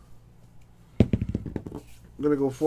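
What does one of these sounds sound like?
Dice rattle and tumble onto a table.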